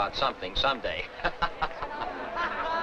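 Men laugh heartily nearby.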